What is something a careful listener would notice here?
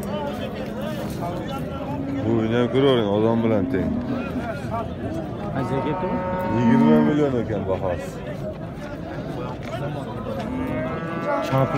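Men talk loudly in a busy crowd close by, outdoors.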